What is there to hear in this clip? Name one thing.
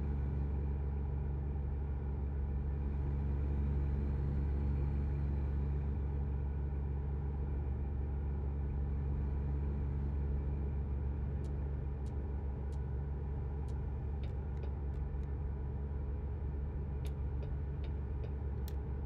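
A truck engine hums with a steady low drone as it cruises along.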